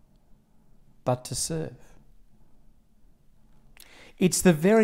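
A middle-aged man speaks calmly and close by, with pauses.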